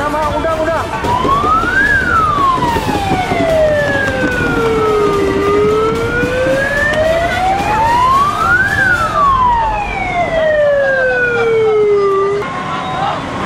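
A siren wails, rising and falling slowly.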